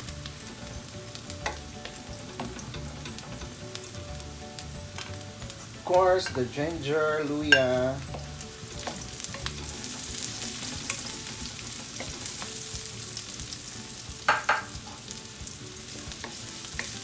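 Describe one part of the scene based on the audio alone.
A wooden spoon scrapes and taps against a metal pan.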